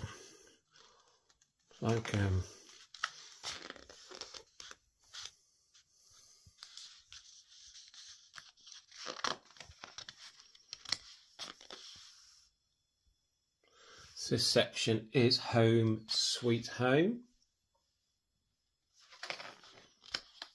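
Stiff pages of a large book are turned with a papery rustle.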